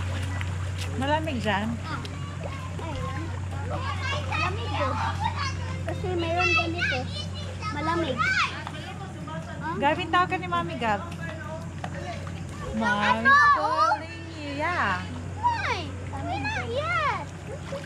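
Children shout and talk with excitement.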